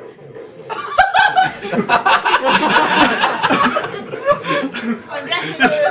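An audience laughs and cheers in a large room.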